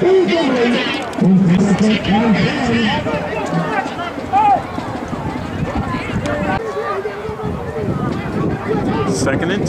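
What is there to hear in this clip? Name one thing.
Players and spectators call out across an open field.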